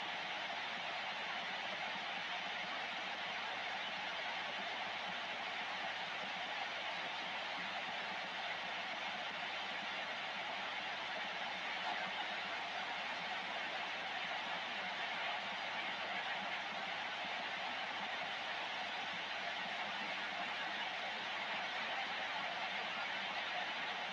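Steady static hisses from a radio receiver.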